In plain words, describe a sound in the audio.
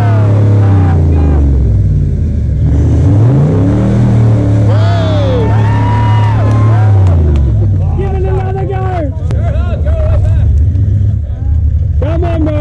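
A truck engine revs hard, rising and falling in pitch.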